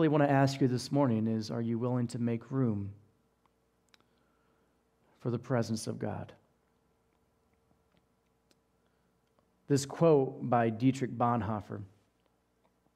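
A man speaks calmly into a headset microphone, in short phrases with pauses.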